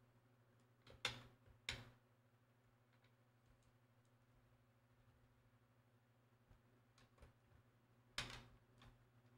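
Short electronic menu blips sound a few times.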